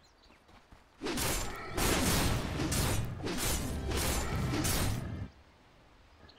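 Loud blows and magical bursts clash in a fast fight.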